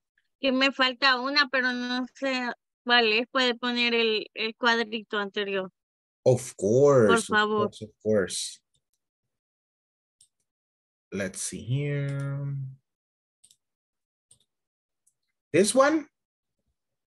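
A man speaks over an online call, in short bursts with pauses.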